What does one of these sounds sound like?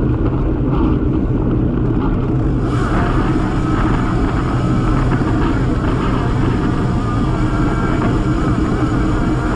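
Bicycle tyres hum steadily on the road.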